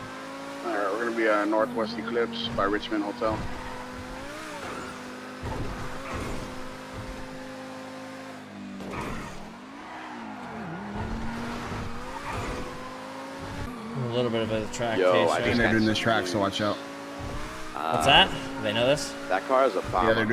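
A car engine hums as the car drives, its pitch rising and falling.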